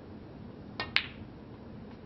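Snooker balls clack together.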